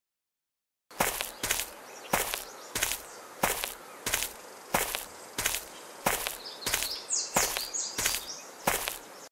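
Footsteps tap steadily on pavement outdoors.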